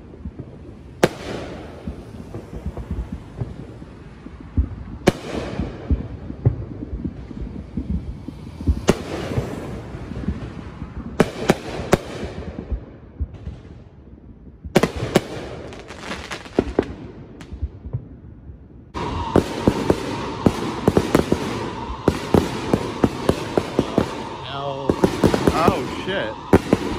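Fireworks boom loudly outdoors.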